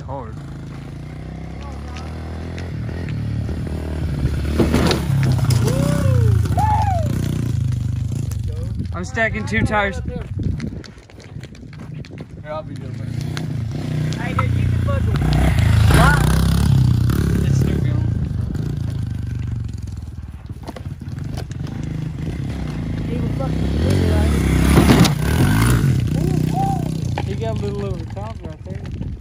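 A small dirt bike engine revs and putters nearby.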